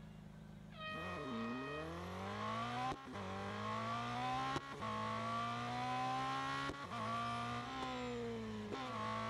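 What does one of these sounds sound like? A racing car engine roars as it accelerates, climbing and dropping in pitch with each gear change.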